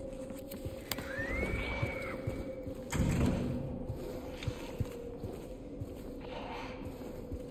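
Footsteps fall slowly on a hard floor.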